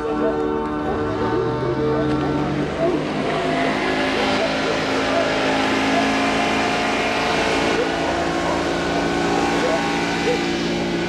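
An outboard motor revs up as an inflatable boat speeds off.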